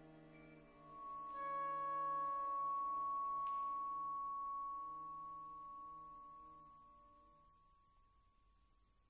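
An ensemble plays a final sustained chord that rings and fades in a large hall.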